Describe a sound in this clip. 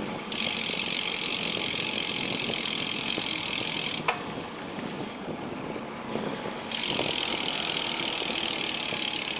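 Wind rushes steadily past while riding outdoors.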